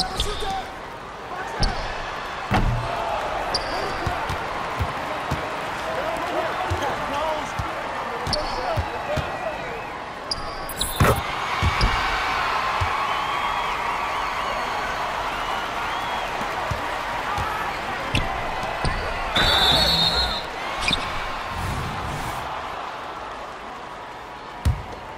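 A large crowd murmurs and cheers in a basketball video game.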